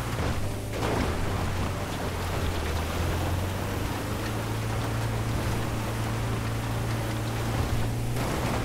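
Tyres crunch over snow.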